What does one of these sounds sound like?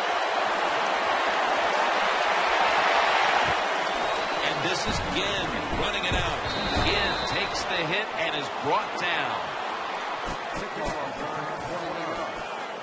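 A stadium crowd roars loudly, then quiets down.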